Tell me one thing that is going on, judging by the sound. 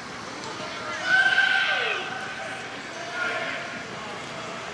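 A man shouts from across an open outdoor space.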